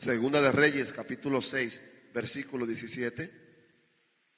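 A man preaches with animation into a microphone.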